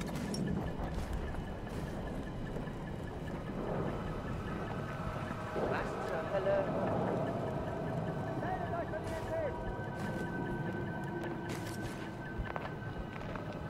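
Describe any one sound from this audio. Footsteps crunch over gravel.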